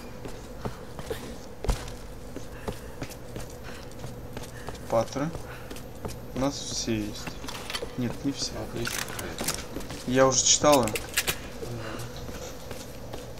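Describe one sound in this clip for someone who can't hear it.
Footsteps run across a stone floor.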